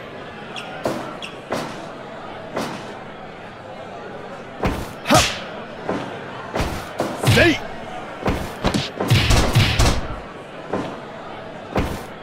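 Heavy blows and slams thud on a wrestling ring mat.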